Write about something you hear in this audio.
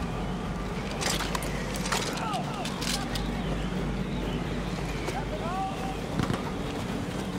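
Metal gear clicks and rattles in short bursts.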